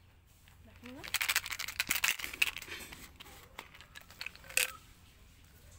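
Plastic packaging crinkles and rattles in someone's hands.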